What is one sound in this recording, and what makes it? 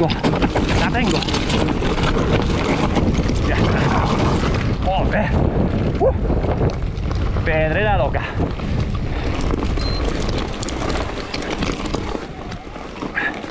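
Bike tyres rumble and crunch over a rough, stony trail.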